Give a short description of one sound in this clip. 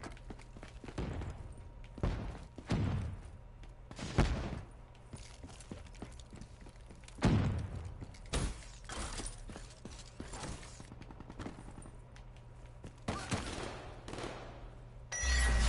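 Gunshots crack with a short echo in a video game.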